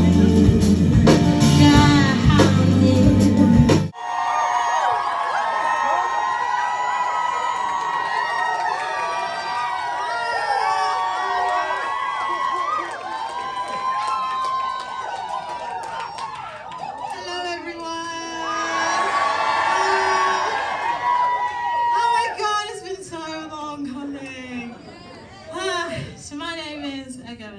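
A woman sings into a microphone through loudspeakers.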